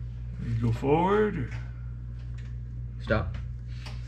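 A ratchet wrench clicks as a bolt is tightened.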